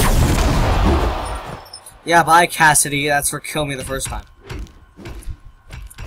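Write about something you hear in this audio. Game sound effects clash and whoosh.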